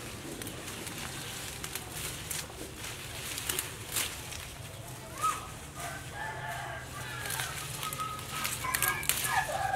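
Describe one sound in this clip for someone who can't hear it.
Leafy stems snap and rustle as they are picked by hand.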